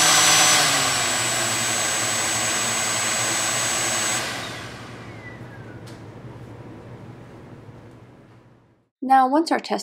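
A small electric motor whines steadily, then winds down and fades away.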